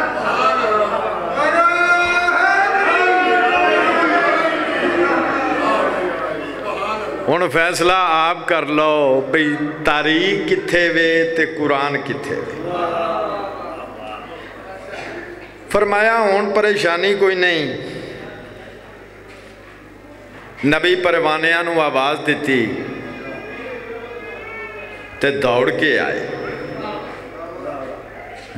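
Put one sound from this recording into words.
A man recites loudly and passionately into a microphone, heard through loudspeakers in an echoing space.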